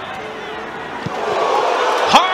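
A crowd roars louder as an attack nears the goal.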